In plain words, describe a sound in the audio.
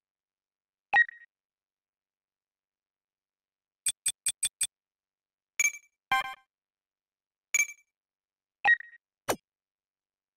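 Short electronic menu beeps and blips sound now and then.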